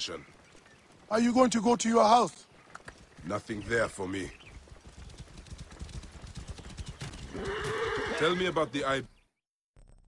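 Horses gallop with hooves thudding on a dirt road.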